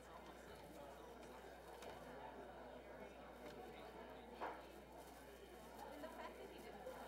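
An audience murmurs and chats quietly in a room.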